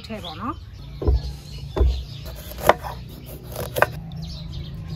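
A knife chops on a wooden board.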